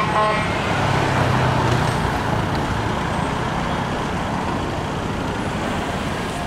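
A car engine roars as a car drives past close by.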